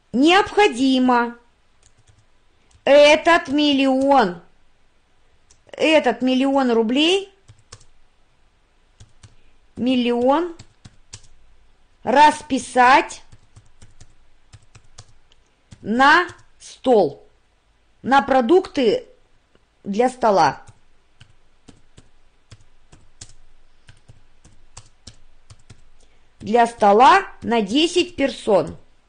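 A woman speaks calmly into a microphone, pausing between phrases.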